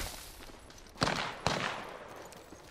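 A gun is handled with a metallic clack.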